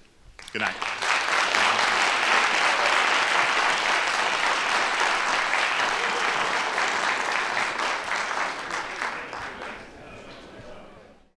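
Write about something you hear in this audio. An audience applauds loudly in a large hall, then the clapping fades.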